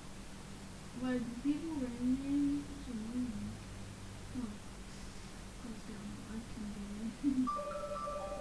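A young boy talks with animation into a headset microphone.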